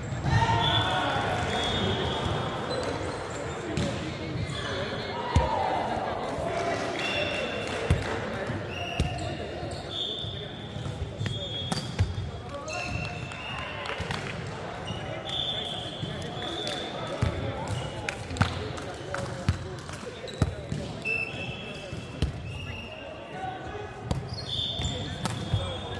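Shoes squeak sharply on a wooden court.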